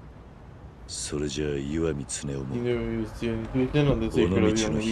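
A man speaks calmly and seriously, close up.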